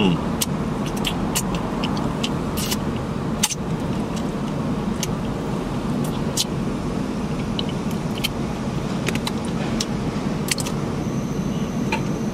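A man chews food noisily up close.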